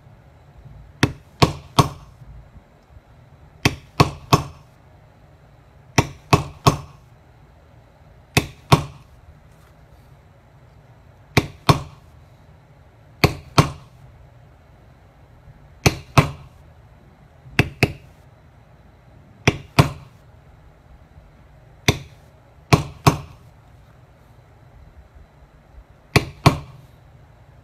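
A mallet taps a metal tool in short bursts of sharp knocks.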